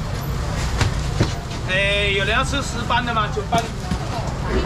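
Plastic crates and tubs knock and clatter.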